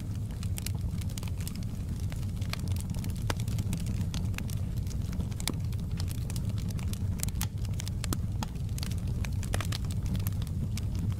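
A wood fire crackles and pops steadily.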